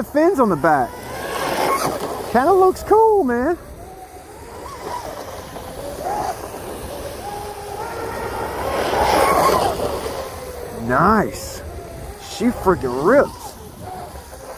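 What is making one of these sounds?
Spray hisses from a boat skimming fast over water.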